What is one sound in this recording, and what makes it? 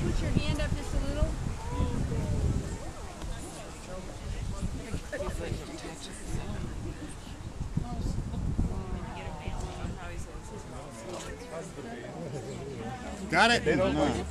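People in a crowd murmur and chatter nearby.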